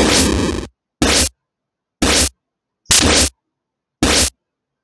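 Swords clash in short, sharp bursts.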